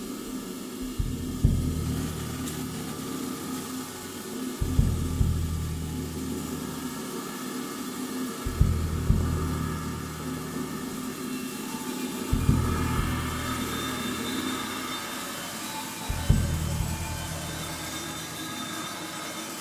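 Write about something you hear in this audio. A bass drum booms deeply at slow, even intervals and rings out.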